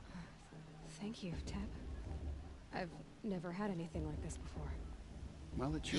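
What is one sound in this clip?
A young woman speaks gently and gratefully.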